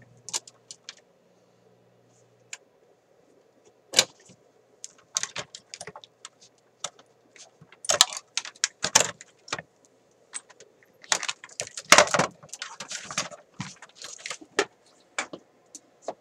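Cables and plugs click and rattle as hands handle them.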